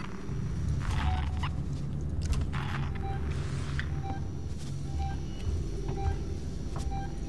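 A motion tracker beeps with short, regular electronic pings.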